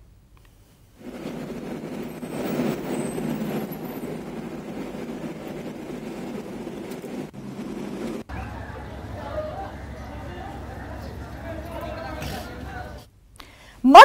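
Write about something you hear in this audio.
Traffic hums along a road.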